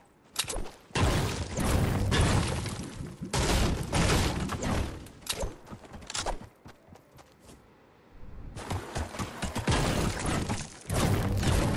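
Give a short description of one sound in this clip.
A pickaxe strikes rock with sharp, repeated clanks.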